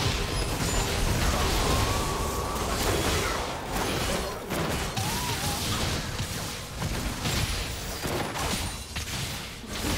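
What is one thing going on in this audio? Spell effects crackle and burst in a chaotic game fight.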